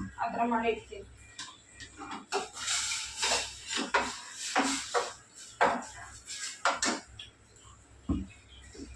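Metal lids and tins clink and knock.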